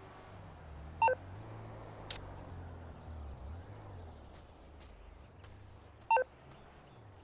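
A phone beeps.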